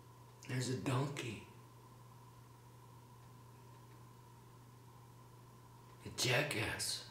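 A middle-aged man speaks calmly and close to a microphone, in short phrases.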